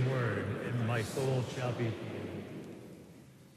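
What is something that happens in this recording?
An elderly man chants slowly through a microphone, echoing in a large hall, then falls silent.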